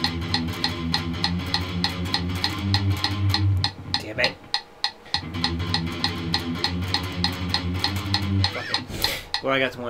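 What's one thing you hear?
A distorted electric guitar plays fast, chugging palm-muted notes.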